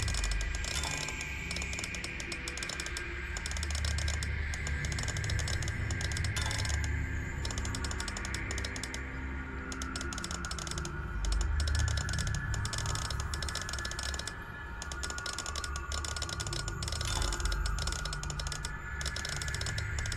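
Metal gears and rings turn with a grinding, clicking mechanical rattle.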